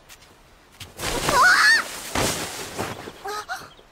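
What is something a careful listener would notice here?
A boy cries out in pain.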